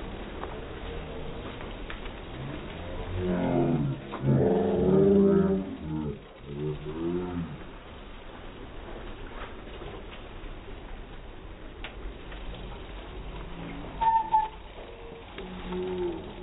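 Many bicycles whir past on a wet road.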